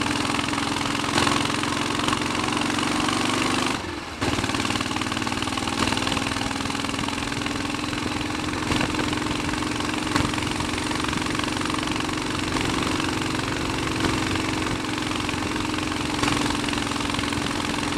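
A single-cylinder Royal Enfield Bullet 500 motorcycle thumps along at cruising speed.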